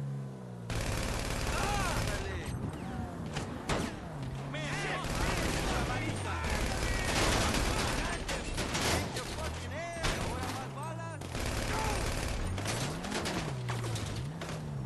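A car engine revs up and down as the car drives fast.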